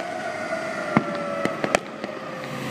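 Fireworks pop sharply in the distance.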